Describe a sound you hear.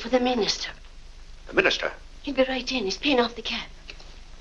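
An elderly woman speaks with animation close by.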